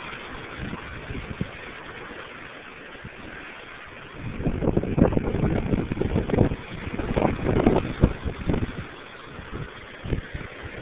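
Waves crash and surge against rocks below.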